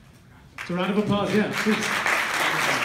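A man speaks briefly to an audience.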